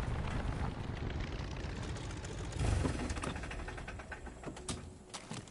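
A small propeller plane's engine idles with a low, steady rumble.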